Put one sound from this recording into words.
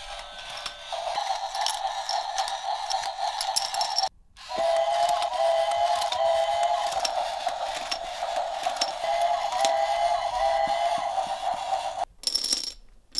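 A small toy motor whirs steadily.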